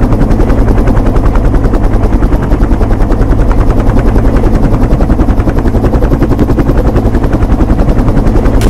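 A helicopter's rotor blades thump rapidly and steadily.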